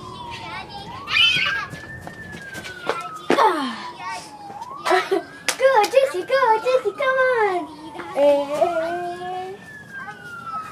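A young girl laughs and shouts with excitement nearby.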